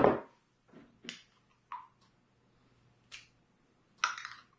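A whisk clinks against a glass jar.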